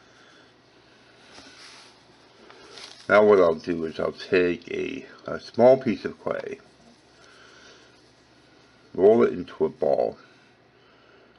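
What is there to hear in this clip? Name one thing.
Fingers softly press and knead a lump of clay.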